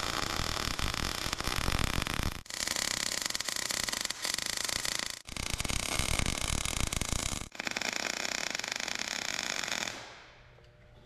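A welding torch crackles and sizzles in bursts.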